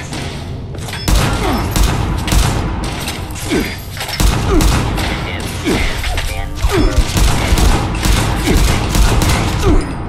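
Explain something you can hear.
A rifle fires rapid shots in bursts.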